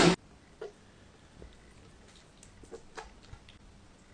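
Thick sauce plops into a glass bowl.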